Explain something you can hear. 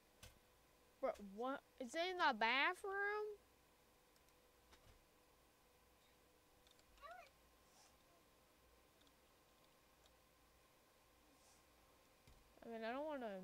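A child speaks with animation, close to a microphone.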